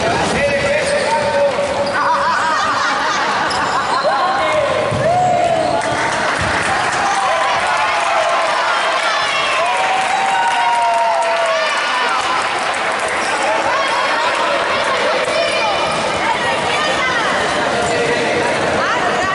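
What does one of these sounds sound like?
Children shout and chatter nearby.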